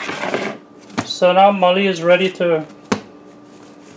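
Soft dough thumps onto a hard counter.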